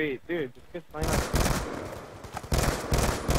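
Gunfire bursts in rapid shots.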